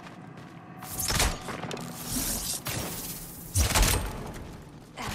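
A bowstring twangs as an arrow is loosed with a whoosh.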